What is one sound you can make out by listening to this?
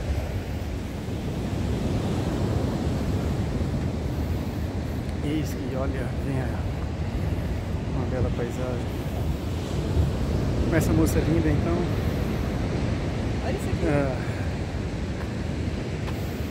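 Wind blows roughly across the microphone outdoors.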